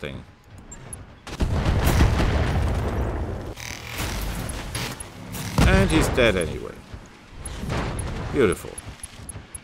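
Laser weapons fire with sharp zaps.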